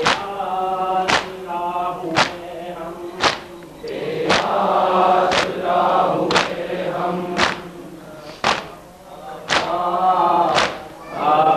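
A crowd of men beat their chests in a steady rhythm, with loud slaps about once a second.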